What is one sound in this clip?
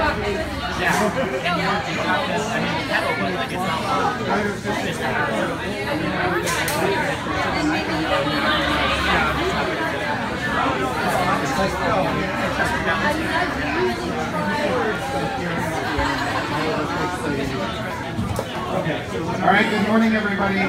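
Many people chatter all around.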